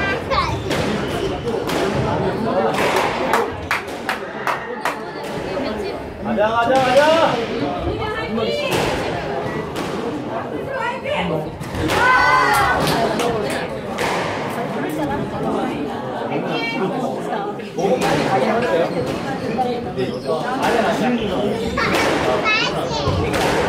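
Rackets strike a squash ball that smacks off the walls of an echoing court.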